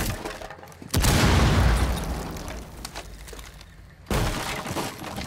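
A window glass shatters loudly.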